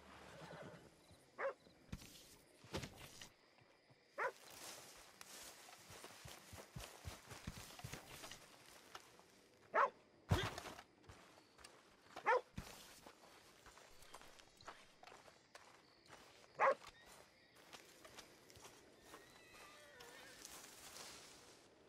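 Footsteps crunch over dirt and grass.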